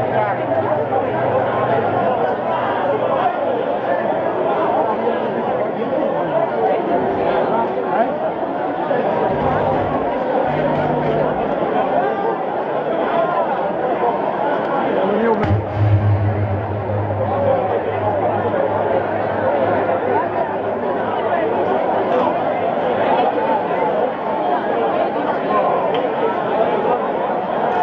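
Loud dance music with a deep thumping bass plays through loudspeakers.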